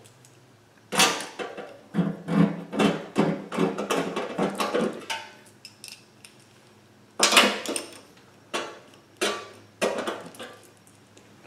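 A ratchet wrench clicks rapidly as a bolt is tightened.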